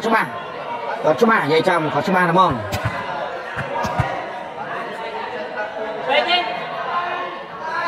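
A crowd of spectators chatters and cheers in a large echoing hall.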